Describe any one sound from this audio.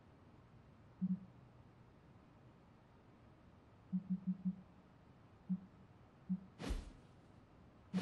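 Short soft menu blips sound now and then.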